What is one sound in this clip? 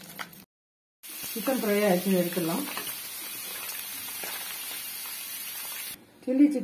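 Oil sizzles and crackles steadily as food fries.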